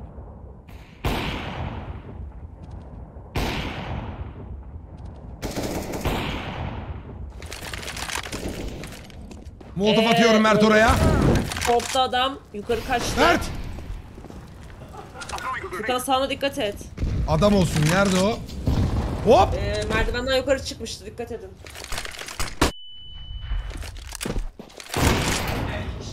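A sniper rifle fires sharp shots.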